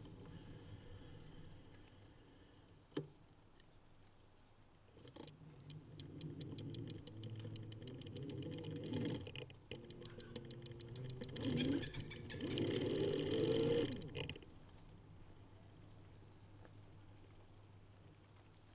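A bicycle rolls slowly over a paved path.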